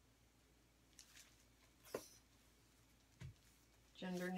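Plastic squeeze bottles knock and clatter as they are picked up and set down.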